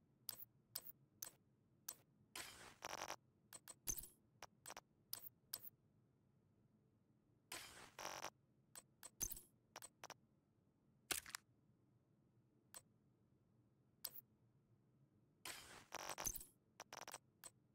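Short, sharp menu clicks and swishes sound again and again.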